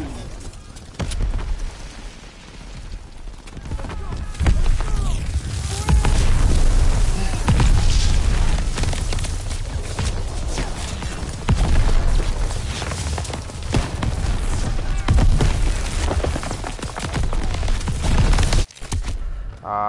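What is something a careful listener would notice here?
Gunfire crackles in rapid bursts all around.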